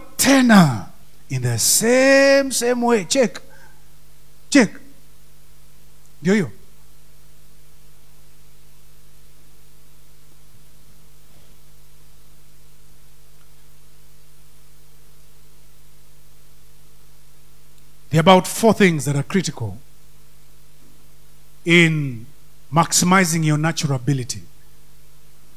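A man speaks into a microphone with long pauses, heard over loudspeakers.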